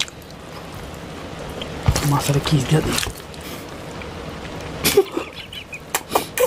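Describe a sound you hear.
Hands squish and mix soft rice and curry close up.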